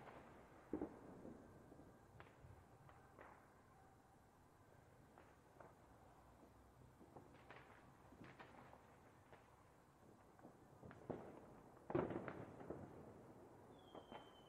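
Fireworks bang and crackle in the distance.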